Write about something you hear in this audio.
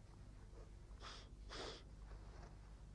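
An elderly man sniffs sharply twice.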